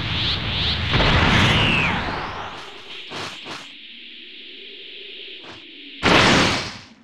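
A fighter whooshes through the air.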